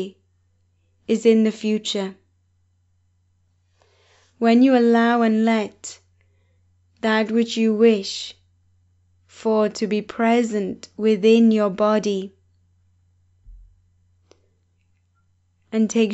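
A woman speaks calmly and warmly into a close microphone, pausing between phrases.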